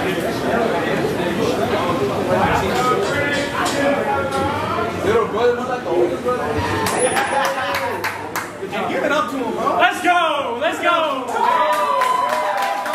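A crowd of men talks and calls out nearby.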